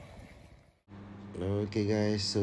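A man speaks with animation up close.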